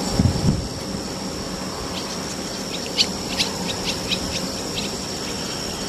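Swallows twitter in short, high chirps.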